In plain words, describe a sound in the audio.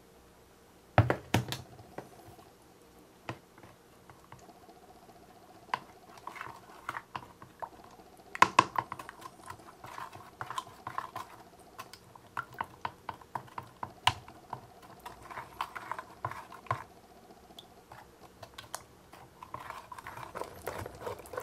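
A plastic stick stirs liquid in a plastic cup, tapping and scraping against its sides.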